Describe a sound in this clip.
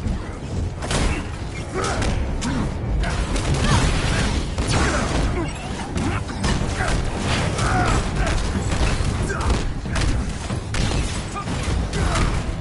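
Heavy punches and blows land with loud thuds.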